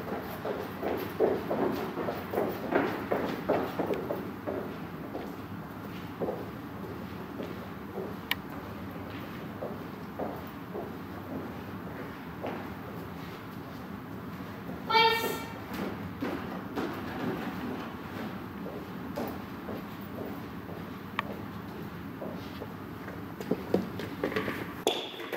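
A woman speaks encouragingly to a dog in a large echoing room.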